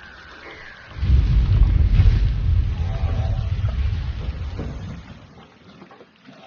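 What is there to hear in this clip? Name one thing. Thunder rumbles deeply and slowly fades.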